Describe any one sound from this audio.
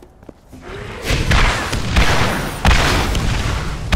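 A gun fires in loud, rapid bursts.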